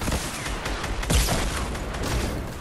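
A gun fires a burst of shots.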